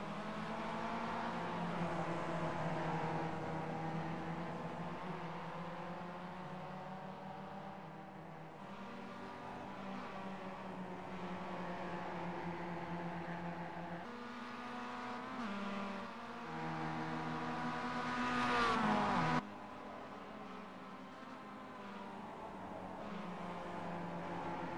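Four-cylinder sports car engines rev hard as the cars race around a track.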